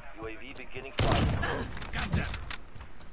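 A bolt-action sniper rifle fires a single heavy boom.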